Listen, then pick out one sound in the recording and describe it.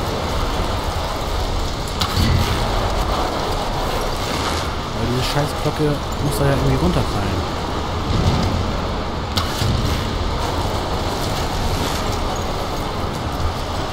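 A bow string snaps as an arrow is shot.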